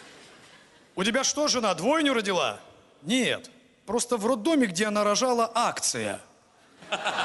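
A young man reads out through a microphone.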